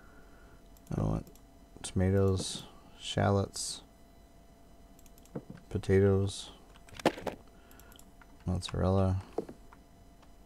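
A man speaks calmly and briefly into a close microphone.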